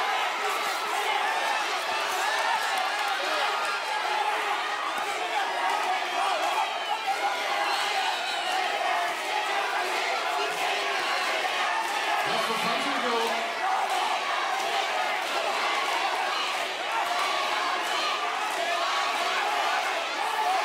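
A large crowd cheers and shouts loudly in an echoing hall.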